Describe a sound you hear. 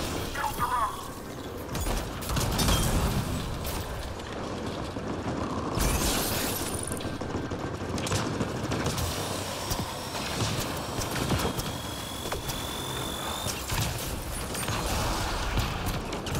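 Explosions burst with heavy thumps.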